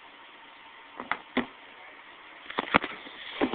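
Plastic toy figures knock and clack against each other.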